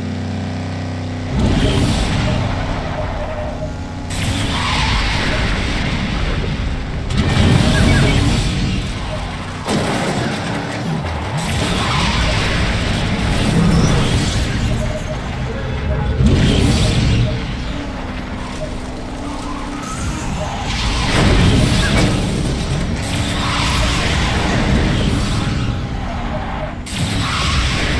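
A race car engine roars steadily.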